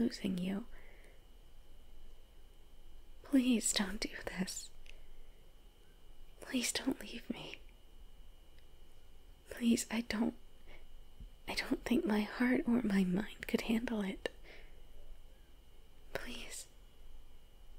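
A young woman speaks softly in short bursts with pauses, close to a microphone.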